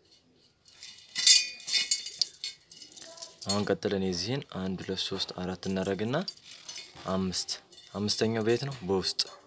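Thin metal spokes clink and rattle against a wheel hub.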